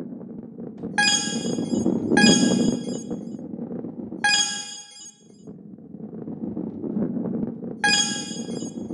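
A bright chime rings as a coin is picked up.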